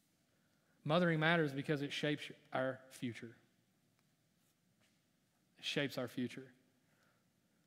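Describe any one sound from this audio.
A man speaks calmly into a microphone in a large echoing room, pausing between phrases.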